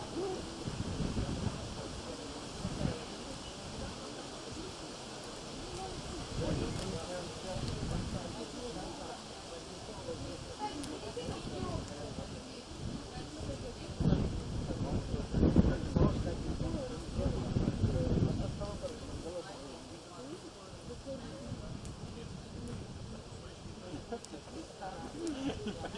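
Men talk calmly outdoors, close by.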